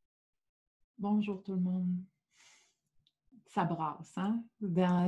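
A young woman speaks warmly and calmly into a nearby microphone.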